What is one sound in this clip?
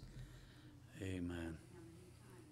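A middle-aged man speaks quietly through a microphone.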